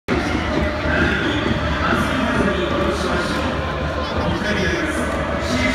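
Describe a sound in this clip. A large stadium crowd murmurs and chants in the open air.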